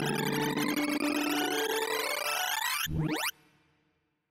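A fast sweep of electronic tones rises sharply in pitch.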